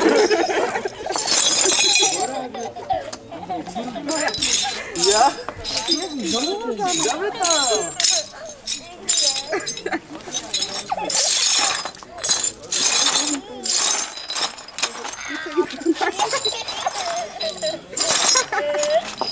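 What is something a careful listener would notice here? Brooms scrape and sweep across stone paving.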